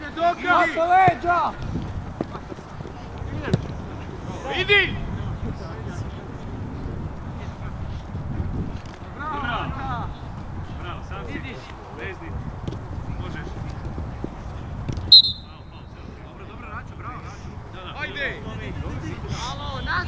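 Football players shout to each other across an open field.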